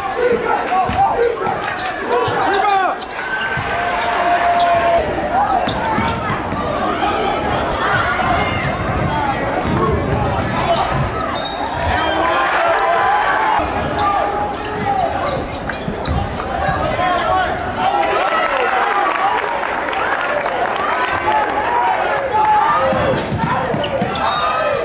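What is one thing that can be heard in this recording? A large crowd cheers and chatters in an echoing gym.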